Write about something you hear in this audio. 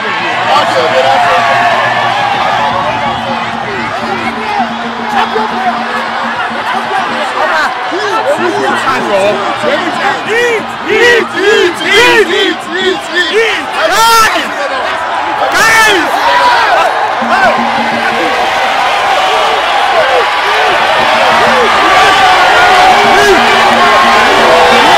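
A crowd cheers and shouts loudly outdoors.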